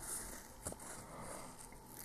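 Fine grit rustles and scrapes as a small base is pressed into it.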